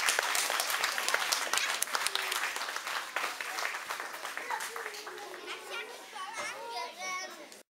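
Children chatter and call out loudly in an echoing hall.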